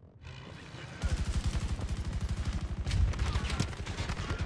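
Rapid gunfire cracks close by.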